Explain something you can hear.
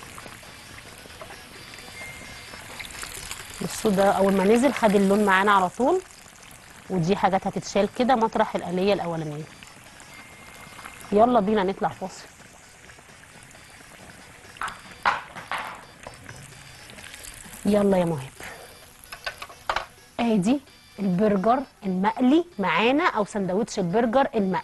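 Oil sizzles and bubbles in a frying pan.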